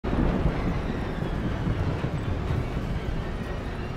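A low, muffled rush of water rumbles steadily, as if heard underwater.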